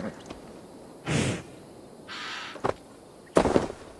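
A horse's hooves thud on grass.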